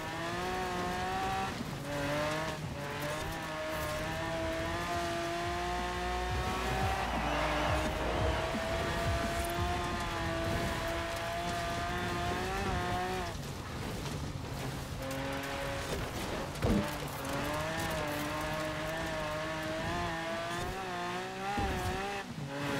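A car engine roars at high revs, its pitch climbing and dropping sharply with each gear change.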